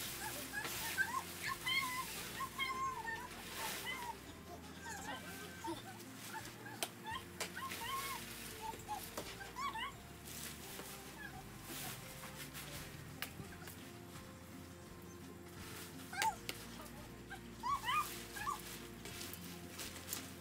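Nylon tent fabric rustles and flaps as it is pulled and handled outdoors.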